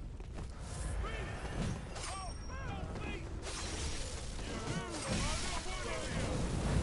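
Monstrous enemies snarl and groan.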